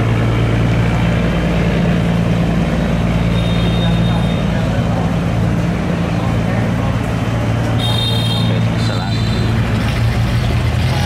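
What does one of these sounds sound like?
A small boat's motor drones steadily as the boat speeds along the water.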